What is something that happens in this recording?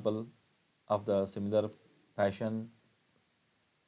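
A man speaks calmly through a microphone, in short bursts.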